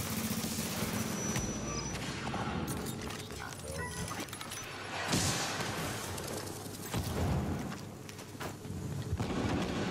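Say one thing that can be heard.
A smoke grenade hisses out a cloud of smoke.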